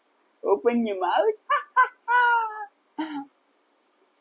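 A man laughs warmly.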